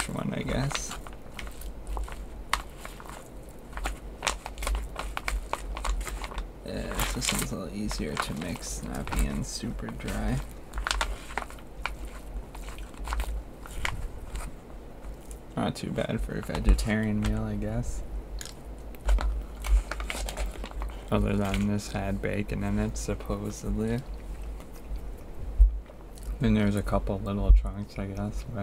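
A foil pouch crinkles and rustles as it is handled.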